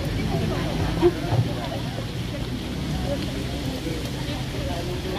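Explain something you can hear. A crowd of men and women chat nearby outdoors.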